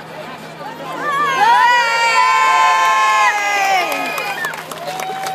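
A crowd of children and adults cheers and screams loudly.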